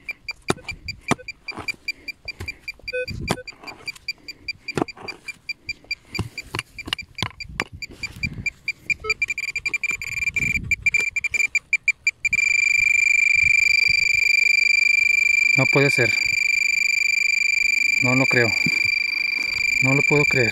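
A trowel scrapes and digs into soil.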